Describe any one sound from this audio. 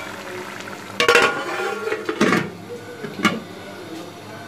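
A metal lid clanks onto a metal pot.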